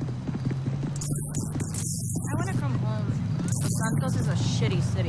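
Electric sparks crackle and fizz.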